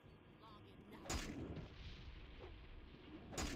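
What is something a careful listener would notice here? A heavy weapon strikes a creature with loud thuds.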